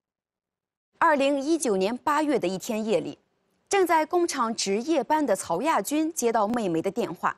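A woman speaks calmly and clearly into a microphone, like a presenter.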